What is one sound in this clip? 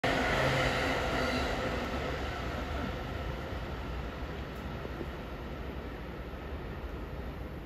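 A train rumbles slowly along the tracks.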